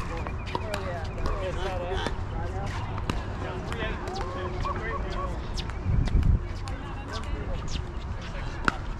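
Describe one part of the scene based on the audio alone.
Paddles strike a plastic ball back and forth with sharp pops.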